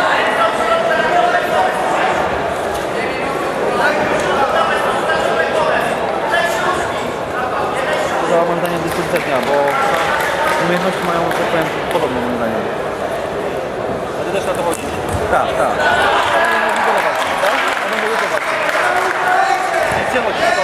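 A crowd of men and women talks and shouts loudly in an echoing hall.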